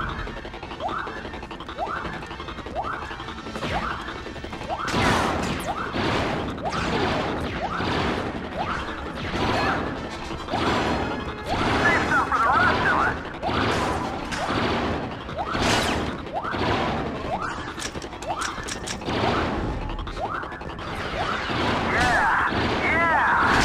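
Laser blasters fire in quick repeated bursts.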